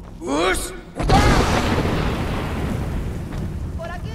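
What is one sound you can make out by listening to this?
A magic spell blasts with a loud rushing roar.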